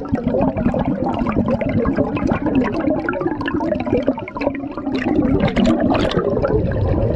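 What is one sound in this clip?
A diver breathes loudly through a regulator.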